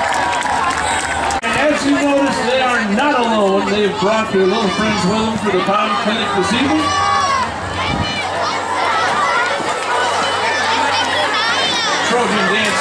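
A crowd of children and teenagers chatters and shouts close by.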